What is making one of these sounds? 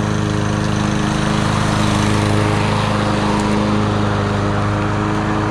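A petrol lawn mower engine runs loudly and steadily close by.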